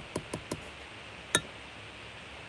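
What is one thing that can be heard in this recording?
A spoon clinks against a glass jug.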